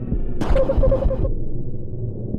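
A video game hit effect crashes with a burst of noise.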